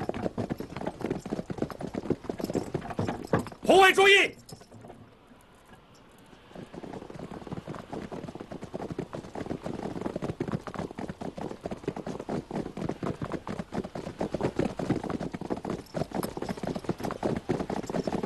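Many horses gallop, their hooves drumming on the ground.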